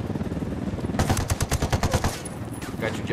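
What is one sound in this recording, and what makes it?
Rapid gunfire rattles loudly in quick bursts.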